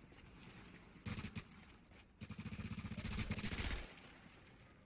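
Guns fire in rapid bursts close by.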